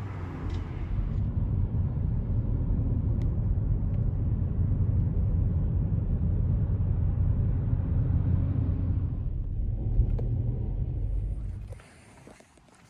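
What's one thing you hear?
A car engine hums and the tyres rumble on the road from inside the car.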